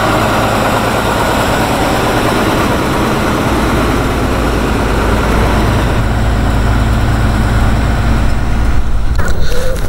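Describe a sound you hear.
A heavy truck engine rumbles as the truck drives past close by.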